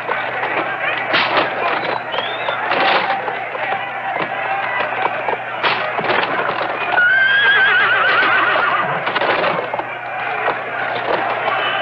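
Chariot wheels rumble over hard dirt.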